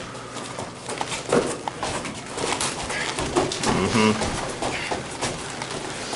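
Feet shuffle and thud on a padded mat.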